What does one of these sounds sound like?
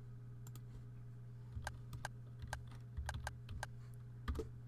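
Soft keyboard clicks tap quickly and unevenly.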